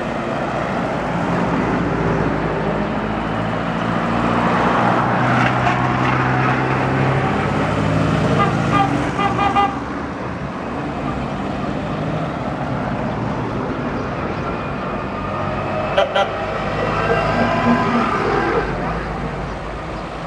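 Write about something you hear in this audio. Tyres hiss on the road as cars pass close by.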